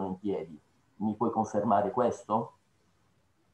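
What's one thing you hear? A middle-aged man speaks animatedly over an online call.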